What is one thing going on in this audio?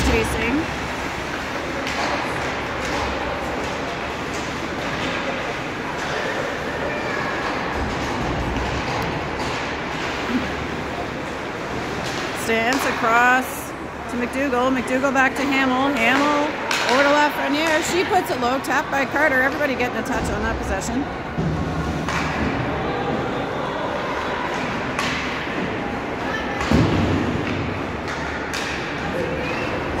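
Hockey sticks clack against a puck.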